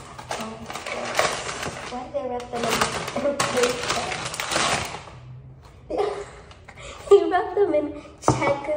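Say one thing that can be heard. A snack packet crinkles.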